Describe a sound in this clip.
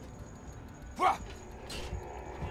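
A sword strikes a creature with a sharp hit.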